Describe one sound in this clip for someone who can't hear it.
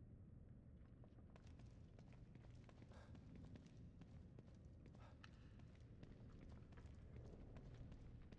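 A man speaks into a microphone close by.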